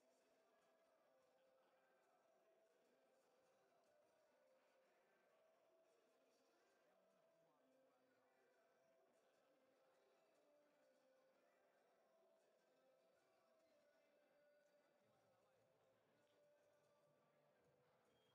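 Players' voices chatter and call out across a large echoing hall.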